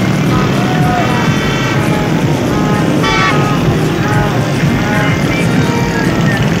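Motorcycle engines rumble steadily nearby.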